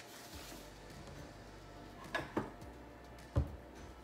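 A cabinet door opens and bumps shut.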